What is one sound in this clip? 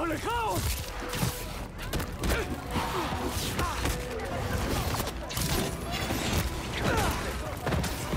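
Punches and kicks land with heavy thuds and smacks.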